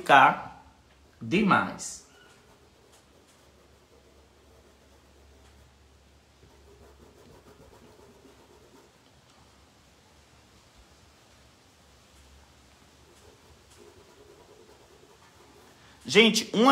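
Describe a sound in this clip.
A sponge brush softly dabs and rubs on cloth.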